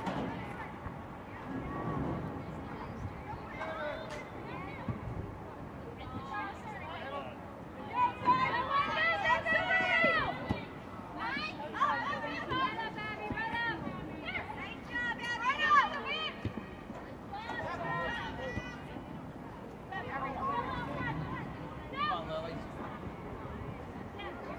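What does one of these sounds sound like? Young women shout and call out to each other across an open playing field outdoors.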